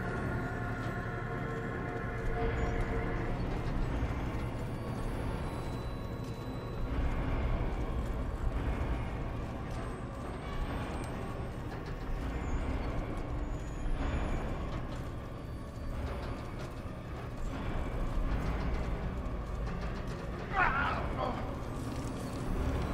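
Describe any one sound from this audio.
Heavy metal gears grind and rumble as a large machine turns.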